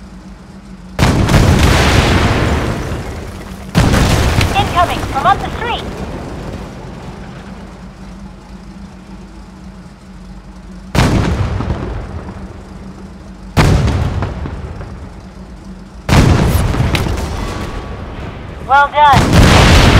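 Loud explosions boom and echo, one after another.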